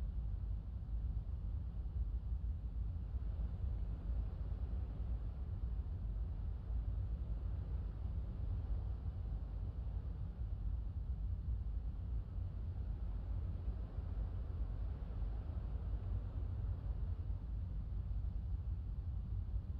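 A jet engine idles with a steady low rumble.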